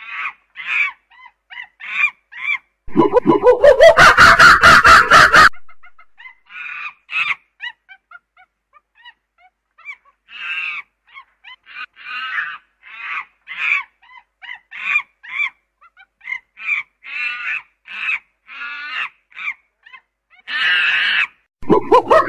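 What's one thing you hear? A chimpanzee screams loudly nearby.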